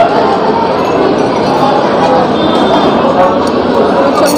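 A cup clinks down onto a saucer.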